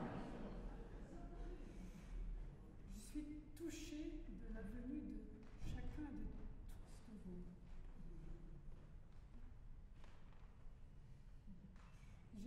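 An elderly man talks calmly to an audience in a large echoing hall.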